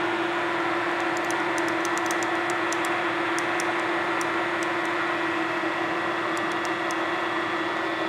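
Metal chips tick and click as they fly off the drill bit.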